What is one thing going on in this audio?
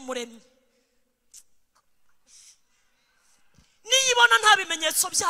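A woman sings loudly through a microphone in a large echoing hall.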